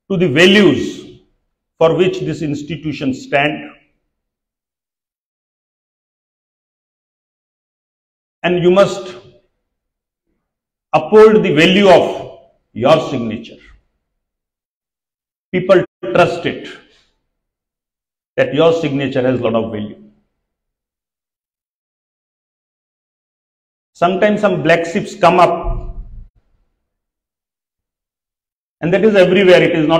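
A middle-aged man speaks calmly through a microphone and loudspeakers, pausing often between phrases.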